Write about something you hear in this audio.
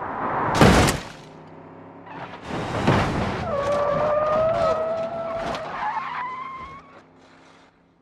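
Cars crash together with loud metal bangs and crunches.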